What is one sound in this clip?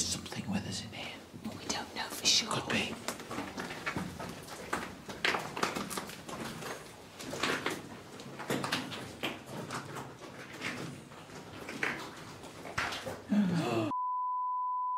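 Footsteps crunch on a stone floor in an echoing tunnel.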